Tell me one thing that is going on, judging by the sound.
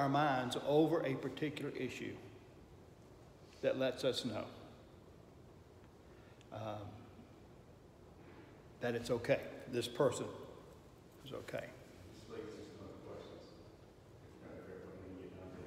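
An older man speaks calmly and close by, in short bursts with pauses.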